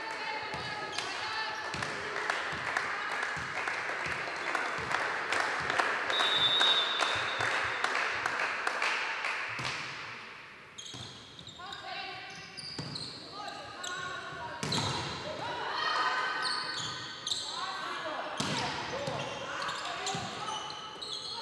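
A volleyball is struck with sharp slaps in an echoing hall.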